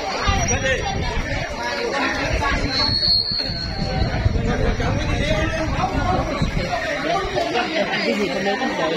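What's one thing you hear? A crowd of children and adults chatter and shout close by.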